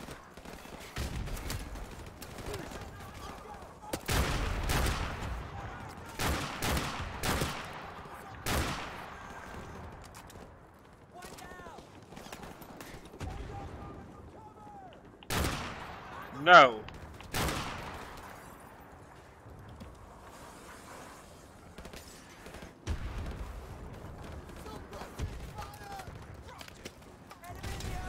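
Gunshots crack and boom.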